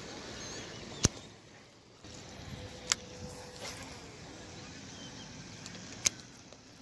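A fishing reel clicks sharply a few times.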